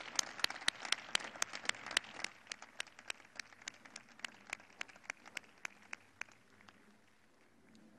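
An audience applauds outdoors, the clapping slowly dying away.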